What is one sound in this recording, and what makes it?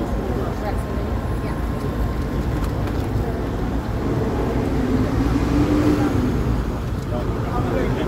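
A crowd of men talk together nearby outdoors.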